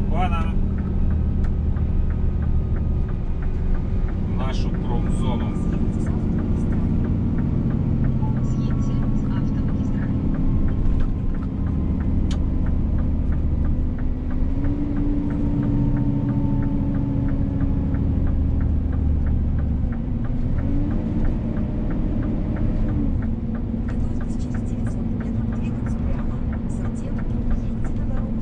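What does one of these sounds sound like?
A heavy vehicle's engine hums steadily from inside the cab as it drives along.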